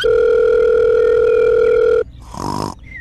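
A phone rings.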